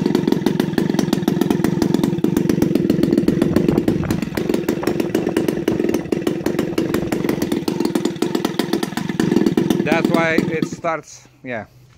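A small model engine runs at a loud, steady buzzing roar, then cuts out.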